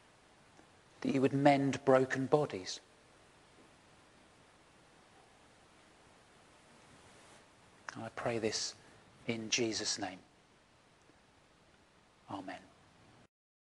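A middle-aged man speaks calmly and close by, with long pauses.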